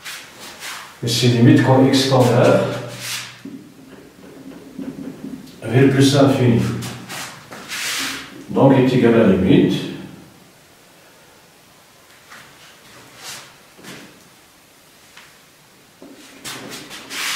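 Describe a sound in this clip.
A man speaks calmly and clearly, as if explaining.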